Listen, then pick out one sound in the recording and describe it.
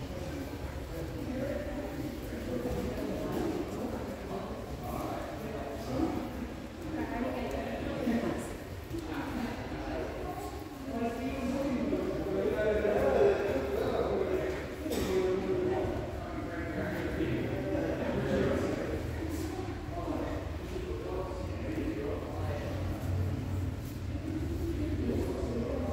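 Several people talk in the distance in a large echoing hall.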